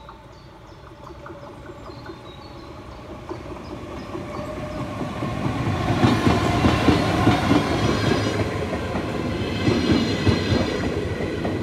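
A train approaches and rumbles past loudly on the rails.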